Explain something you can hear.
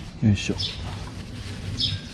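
A plastic sheet crinkles as a hand pulls at it.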